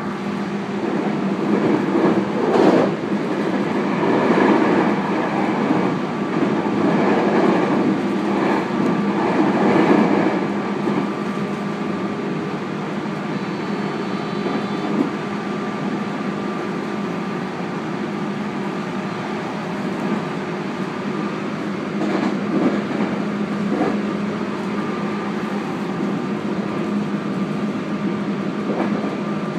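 Train wheels rumble and clatter over the track joints.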